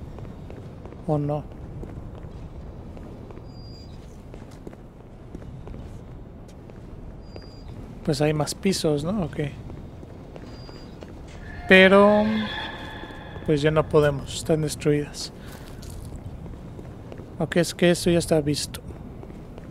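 A man talks into a close microphone in short bursts.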